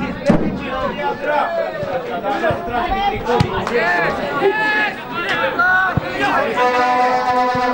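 A football is kicked with a dull thud.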